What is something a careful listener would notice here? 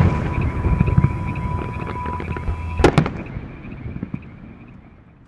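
Fireworks boom and crackle in the distance, then fade away.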